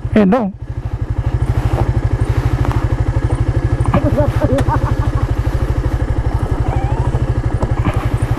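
A motorcycle engine idles with a steady, rapid low thump.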